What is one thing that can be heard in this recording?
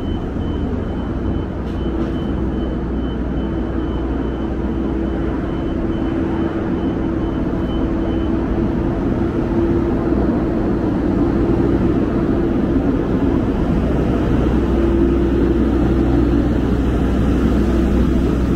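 City traffic hums steadily in the distance.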